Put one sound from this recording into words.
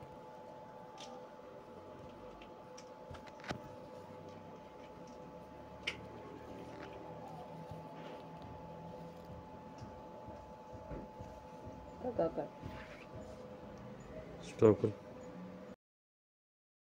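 Hands rustle and fold cotton cloth.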